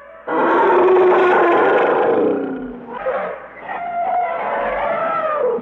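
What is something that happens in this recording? An elephant trumpets loudly.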